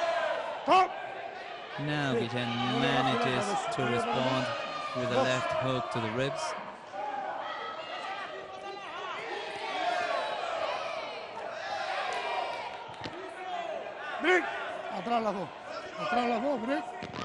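A crowd shouts and cheers in a large hall.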